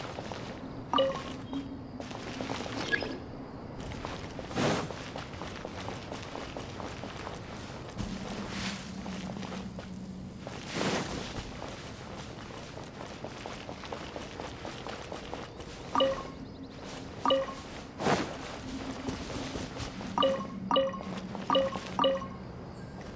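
Short chiming tones ring out as items are picked up.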